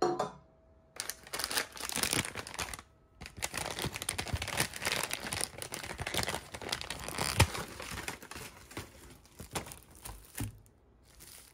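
A paper bag rustles and crinkles as it is handled.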